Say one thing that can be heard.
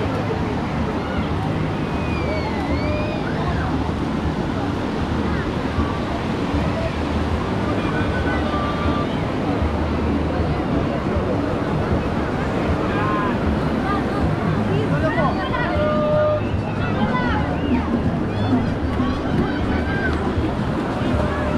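A crowd of people chatter and shout all around.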